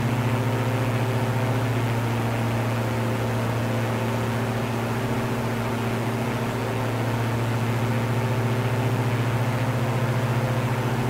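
A small propeller plane's engine drones steadily with a low hum.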